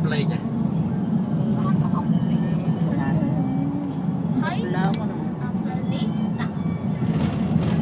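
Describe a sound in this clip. A vehicle's engine and tyres rumble steadily from inside the car.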